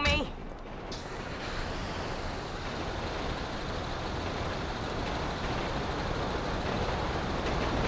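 A truck engine rumbles steadily.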